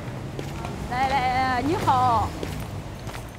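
A middle-aged woman calls out a cheerful greeting nearby.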